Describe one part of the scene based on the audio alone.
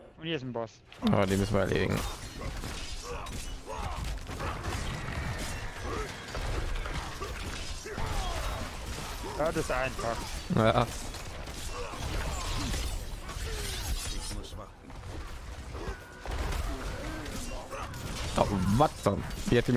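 Blades clash and strike in quick succession.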